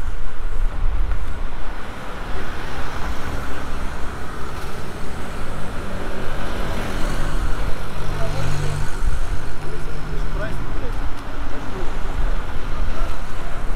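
Footsteps scuff on a pavement close by.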